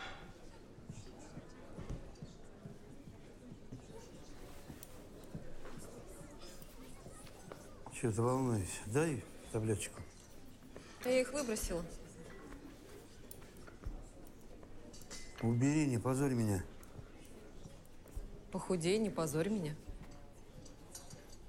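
A crowd murmurs softly.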